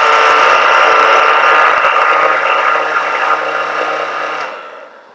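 A blender whirs loudly, blending liquid, then winds down.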